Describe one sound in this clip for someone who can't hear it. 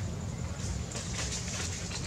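A baby macaque squeals.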